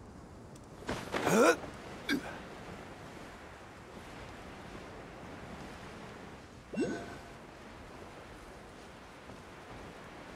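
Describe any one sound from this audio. Wind rushes past during a glide through the air.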